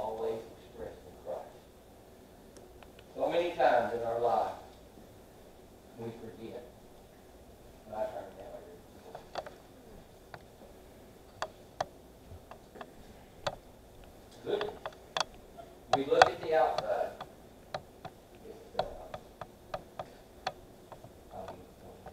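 An elderly man speaks with long pauses, in short bursts.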